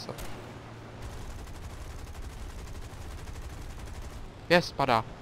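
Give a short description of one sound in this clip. Aircraft machine guns fire in a rapid rattling burst.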